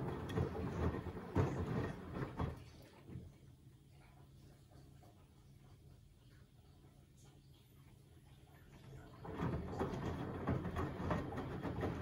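Laundry sloshes and tumbles in a washing machine drum.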